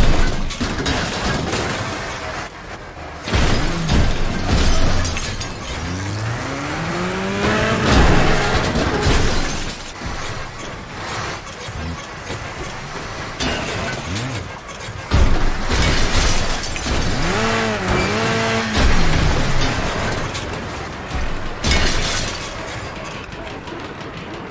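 A car engine revs and roars throughout.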